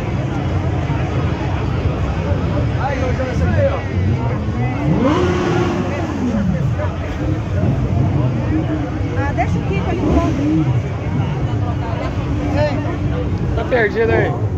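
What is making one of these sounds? A large outdoor crowd chatters loudly all around.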